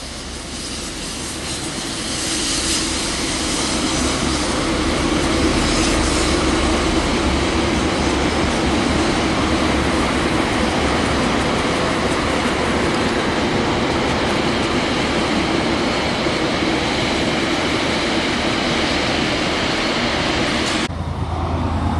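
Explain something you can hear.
A train's carriages rumble past on the tracks.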